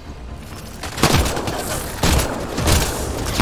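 Gunfire bursts loudly in short blasts.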